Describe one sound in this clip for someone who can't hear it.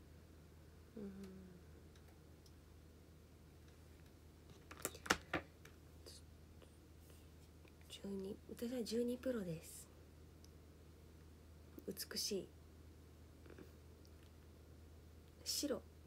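A young woman speaks softly and briefly, close by.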